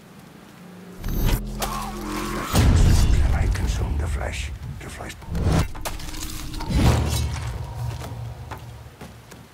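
A man grunts with effort while grappling.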